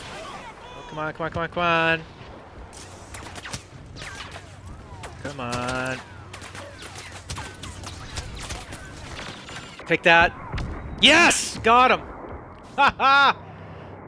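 Laser blasters fire in sharp, zapping bursts.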